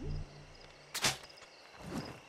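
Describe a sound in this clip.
A dart fires with a short sharp puff.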